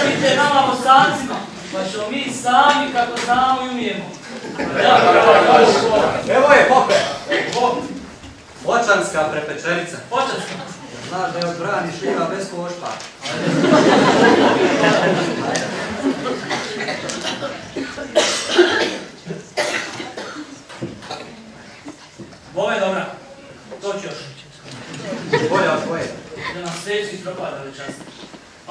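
Several men speak in turn, heard from a distance in a hall.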